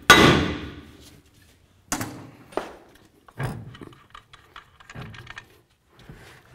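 Metal parts clank and knock as they are handled.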